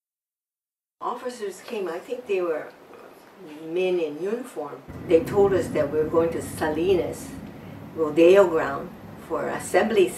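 An elderly woman speaks calmly and closely.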